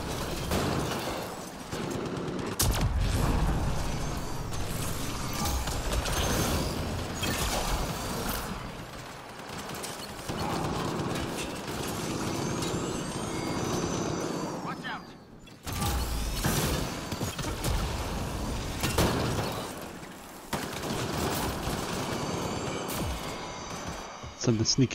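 Gunfire crackles and bangs in rapid bursts.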